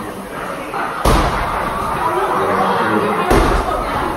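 A heavy ball thuds against a wall.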